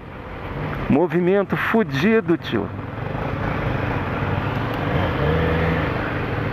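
A motorcycle engine rumbles up close at low speed.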